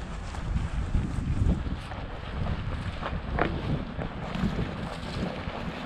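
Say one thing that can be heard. Footsteps crunch through snow at a steady walking pace.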